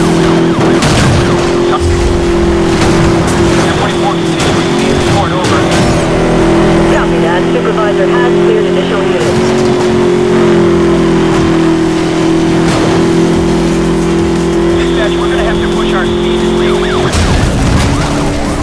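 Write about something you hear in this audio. Cars crash with a loud metallic smash.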